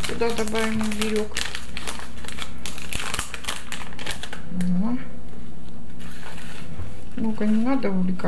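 A paper spice packet rustles as it is torn and shaken.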